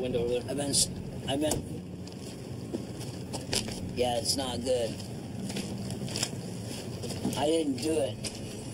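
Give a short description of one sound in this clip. A middle-aged man speaks haltingly, close by.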